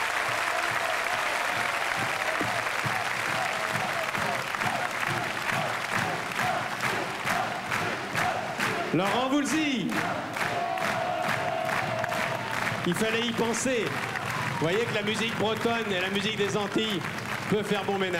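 A crowd applauds and claps along in a large hall.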